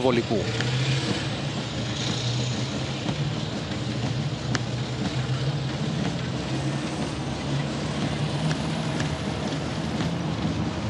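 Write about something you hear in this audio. Heavy tracked vehicles rumble and clatter along a road.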